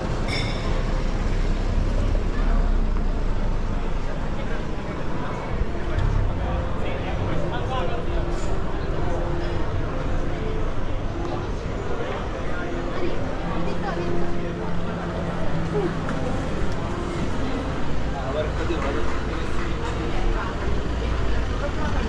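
Car engines idle and hum in slow traffic outdoors.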